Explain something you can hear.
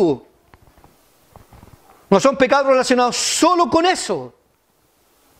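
A middle-aged man speaks with animation into a microphone.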